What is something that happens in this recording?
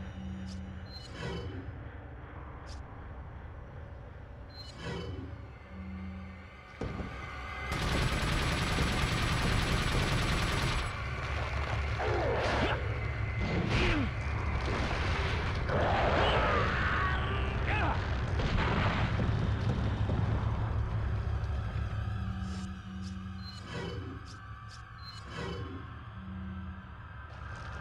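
Menu selection beeps click softly.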